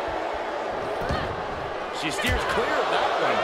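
Bodies thud heavily onto a wrestling ring's mat.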